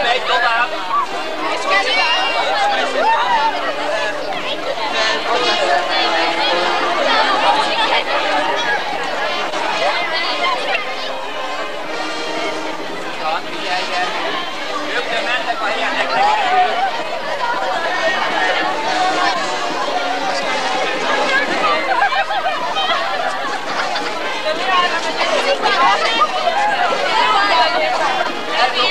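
A crowd of young people chatters outdoors.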